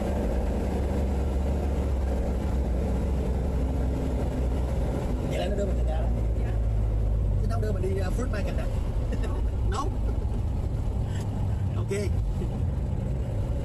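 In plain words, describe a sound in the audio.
An old 1955 Chevrolet's engine rumbles as the car cruises along a road.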